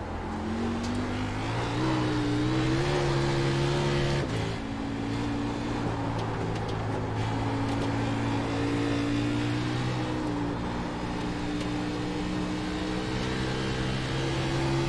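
A race car engine roars, rising in pitch and dropping sharply as it shifts gear.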